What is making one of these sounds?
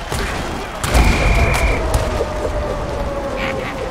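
Armored players collide with a heavy thud.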